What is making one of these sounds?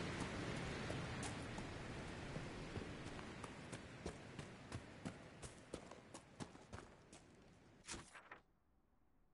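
Footsteps crunch quickly over rough ground.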